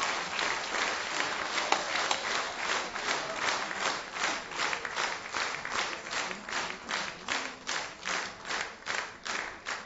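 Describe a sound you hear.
An audience claps along in a steady rhythm in a large hall.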